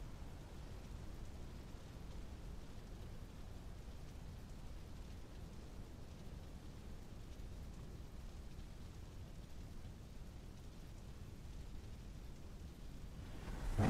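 Fires roar and crackle.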